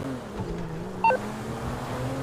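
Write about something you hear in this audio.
A phone beeps.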